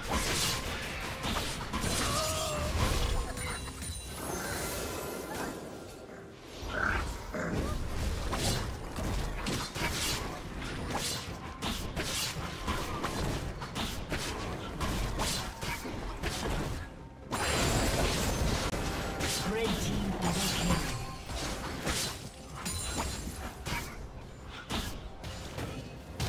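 Video game combat sound effects clash and burst.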